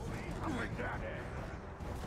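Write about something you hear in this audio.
A ghostly creature shrieks as it leaps.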